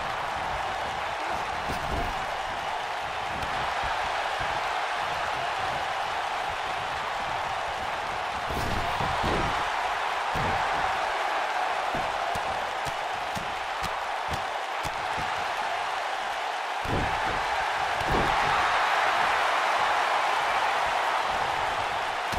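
An arena crowd cheers and murmurs throughout.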